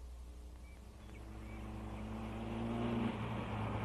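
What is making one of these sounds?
A car engine hums as the car drives up.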